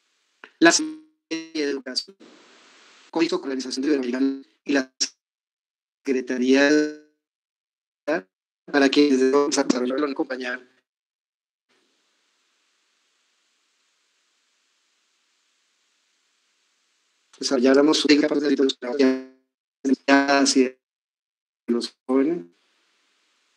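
A man speaks calmly over an online call, in short bursts with long pauses.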